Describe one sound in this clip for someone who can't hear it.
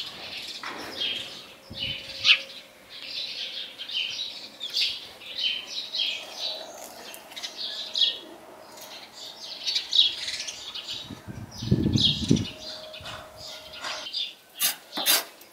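Chickens cluck.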